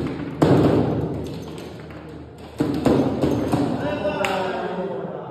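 A foosball ball knocks sharply against the rods and the table walls.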